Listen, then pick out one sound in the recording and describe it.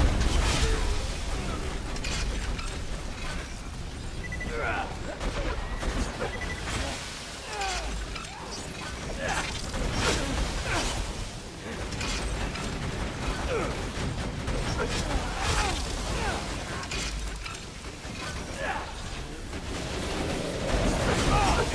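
A rifle fires shots in a video game.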